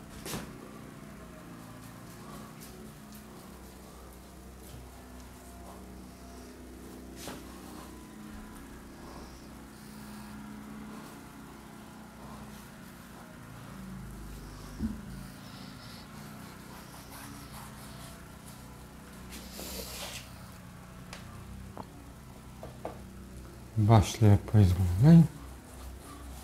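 A cloth rubs and squeaks against a door.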